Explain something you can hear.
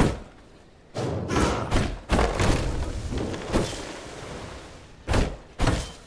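A tree creaks and crashes to the ground.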